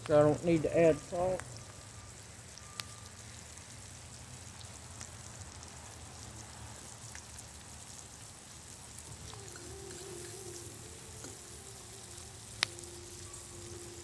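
Onions sizzle softly in a frying pan.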